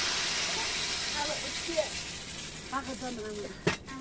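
A pot of food sizzles and bubbles on a fire.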